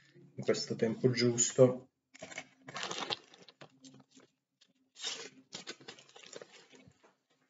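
Paper rustles in hands.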